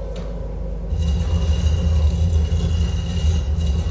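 A heavy stone block grinds and scrapes across a stone floor.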